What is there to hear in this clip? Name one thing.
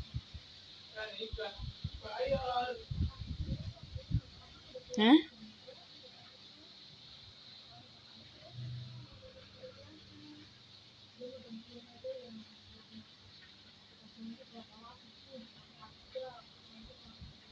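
A woman speaks with animation.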